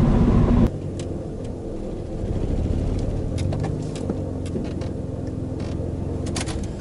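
Small clicks and taps come from inside a car.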